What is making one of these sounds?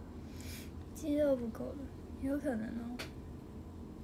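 A young girl speaks close by in a high, playful voice.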